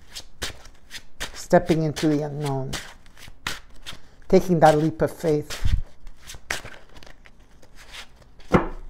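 Cards riffle and tap as a deck is shuffled.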